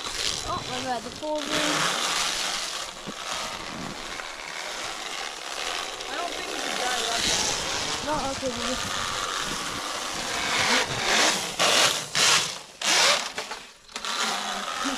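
A small electric motor whines and changes pitch as a toy snowmobile drives across snow.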